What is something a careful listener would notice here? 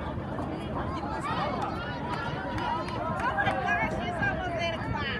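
Young men cheer and call out loudly.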